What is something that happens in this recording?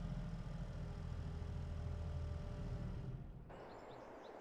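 A tractor engine idles with a low, steady rumble.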